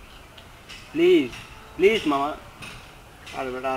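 A young man speaks casually up close.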